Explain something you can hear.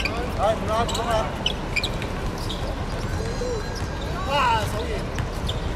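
Sneakers squeak on a hard outdoor court.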